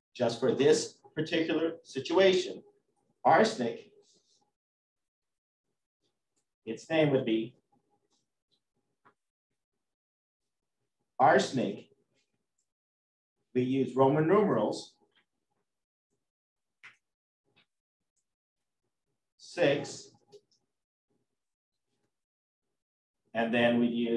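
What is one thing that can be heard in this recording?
A man lectures calmly into a microphone, in short phrases with pauses.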